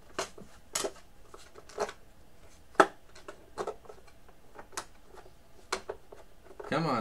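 A man handles small objects with sharp clicks and taps.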